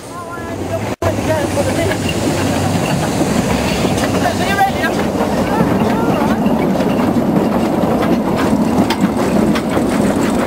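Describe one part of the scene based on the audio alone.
A steam locomotive rumbles and hisses as it passes close by.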